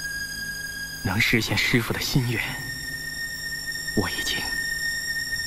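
A young man speaks with calm resolve.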